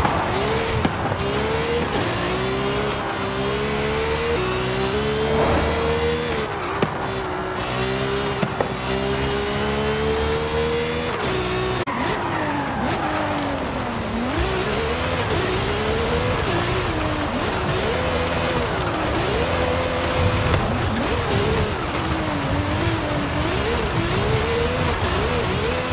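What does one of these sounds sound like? A sports car engine roars and revs up and down through the gears.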